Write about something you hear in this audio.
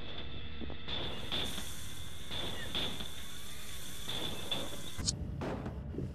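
Electronic static hisses and crackles.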